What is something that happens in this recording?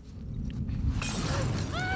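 A flame flares up with a whoosh and crackles.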